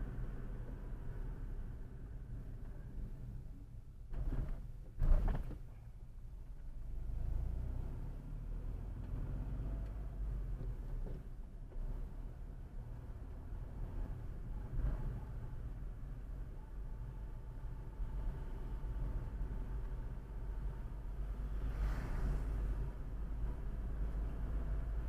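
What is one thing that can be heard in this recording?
A car engine hums steadily as tyres roll over a road.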